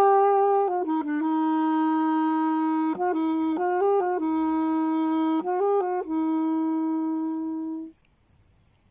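A saxophone plays a slow, mournful melody outdoors.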